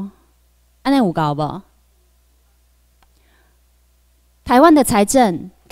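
A young woman speaks through a microphone in short bursts.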